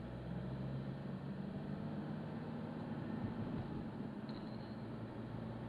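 A bus passes close by in the opposite direction.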